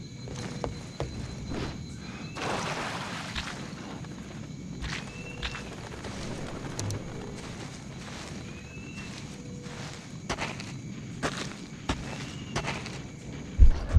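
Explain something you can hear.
Leaves and grass rustle as someone pushes through plants.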